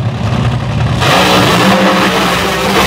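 Dragster engines suddenly roar at full throttle as the cars launch.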